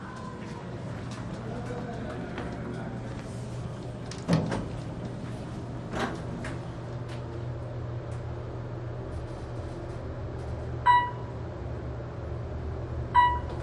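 A traction elevator car hums as it travels.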